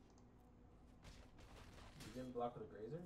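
A game's sound effect whooshes and bursts.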